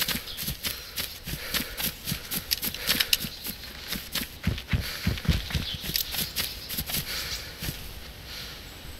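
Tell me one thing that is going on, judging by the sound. Footsteps swish and rustle through tall grass.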